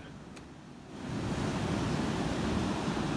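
Waves break and wash ashore.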